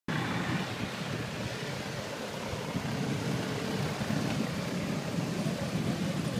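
Motorcycle engines rumble and drone nearby.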